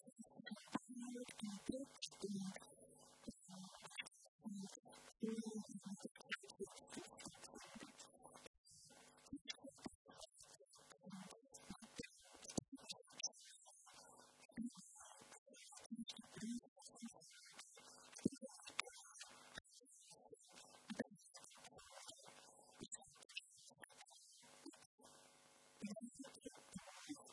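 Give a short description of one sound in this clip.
A woman speaks calmly through a microphone in a hall.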